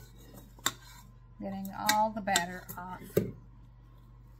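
A spatula scrapes and taps against a metal bowl.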